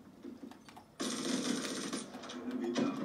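A gun fires a rapid burst.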